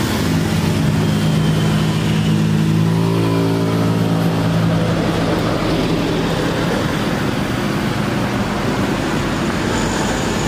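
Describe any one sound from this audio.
An electric hair clipper buzzes steadily close by.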